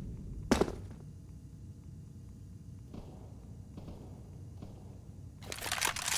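Footsteps tread on hard ground in a video game.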